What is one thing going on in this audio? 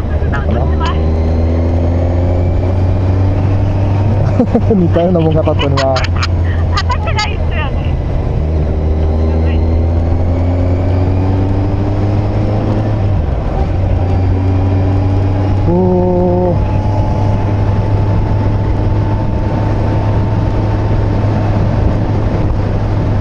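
A motorcycle engine hums steadily, rising and falling in pitch as it shifts gears.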